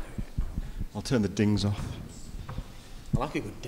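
A man speaks into a microphone through loudspeakers in a large room.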